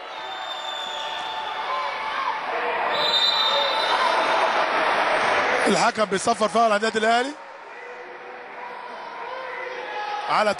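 A crowd in the stands cheers and roars in a large echoing hall.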